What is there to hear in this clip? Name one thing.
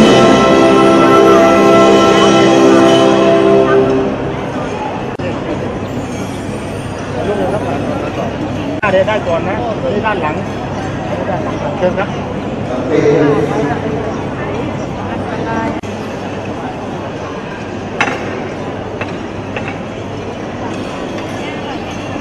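A crowd of men and women chatters in a large echoing hall.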